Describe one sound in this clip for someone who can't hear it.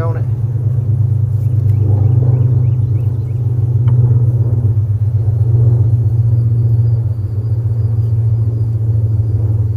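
Honeybees hum in a steady, low drone close by.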